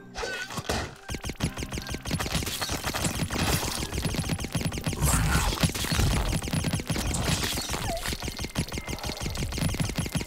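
Rapid video game gunfire and blasts ring out.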